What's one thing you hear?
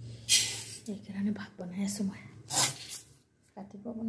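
Dry rice pours and rattles into a metal pot.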